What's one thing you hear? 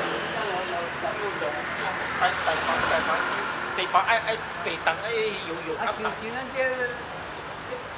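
A woman talks as she walks past.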